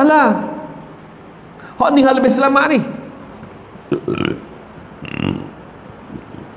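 A middle-aged man speaks with animation into a microphone in an echoing room.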